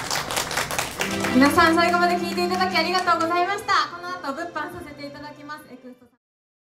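A young woman sings into a microphone through loudspeakers.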